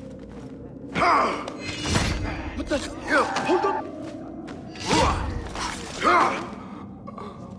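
Blows land and blades strike in a short, loud scuffle.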